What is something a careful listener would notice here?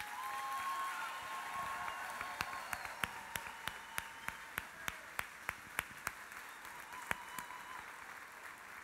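A large crowd claps in rhythm.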